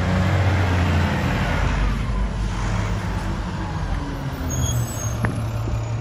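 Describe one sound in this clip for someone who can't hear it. Heavy truck tyres roll slowly over pavement.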